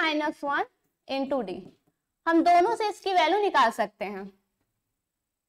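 A woman speaks clearly and steadily, explaining, heard close through a microphone.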